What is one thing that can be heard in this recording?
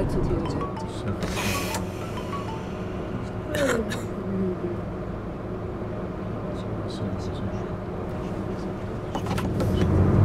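A bus engine idles quietly while the bus stands still.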